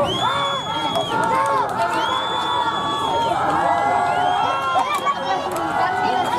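Young players on the sideline shout and call out nearby.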